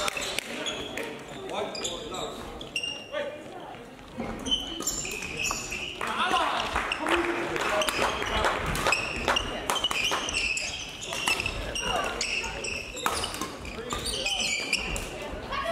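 Sounds echo in a large indoor hall.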